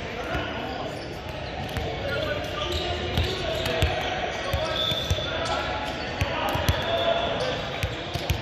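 A volleyball thuds as it is hit and bounces on the floor.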